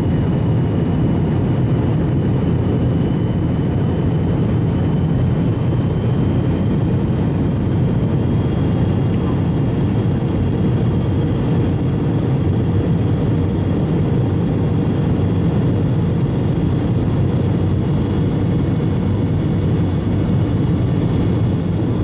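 Jet engines roar and whine steadily.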